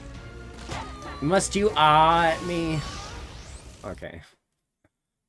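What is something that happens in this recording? Electronic game sound effects chime and whoosh.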